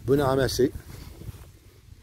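Leaves rustle as a hand brushes through a tree's branches.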